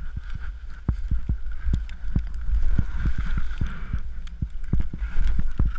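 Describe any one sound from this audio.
Skis hiss and swish through soft snow.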